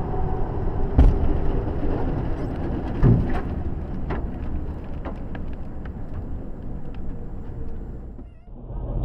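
Bits of debris knock and clatter against the car.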